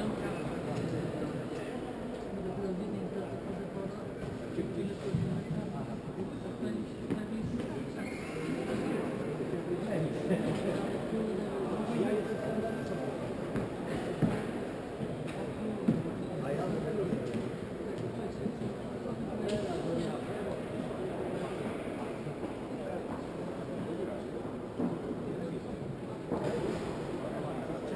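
A crowd of spectators murmurs and chatters in a large echoing hall.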